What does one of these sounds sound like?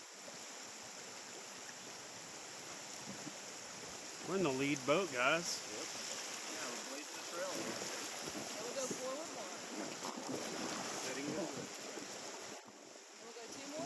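A river's rapids rush and gurgle.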